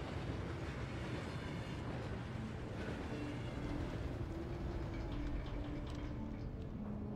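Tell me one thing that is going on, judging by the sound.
A rail cart rumbles and rattles along a metal track.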